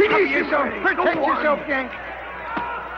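A man shouts excitedly at close range.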